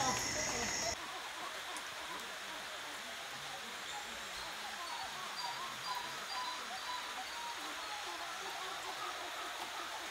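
Leaves rustle in the wind.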